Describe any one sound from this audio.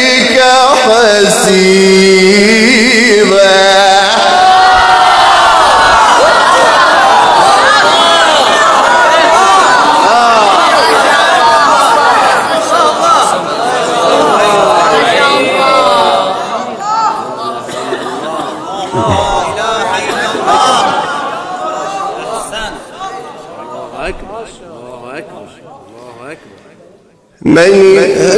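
A young man chants melodically through a microphone in a reverberant hall.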